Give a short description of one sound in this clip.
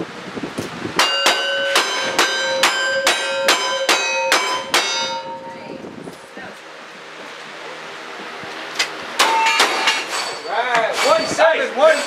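Gunshots fire in quick succession, loud and sharp.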